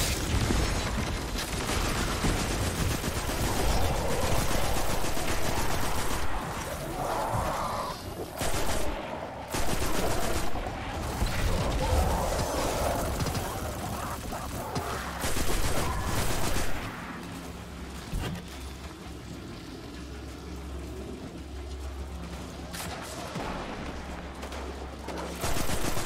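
Rapid gunfire rattles and booms in quick bursts.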